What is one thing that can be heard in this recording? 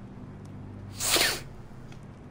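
A fire flares up with a sudden whoosh.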